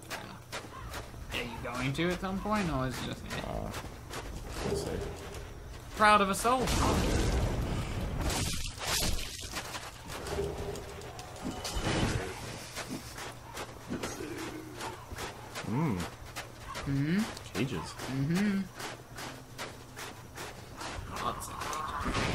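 Armoured footsteps crunch over snow.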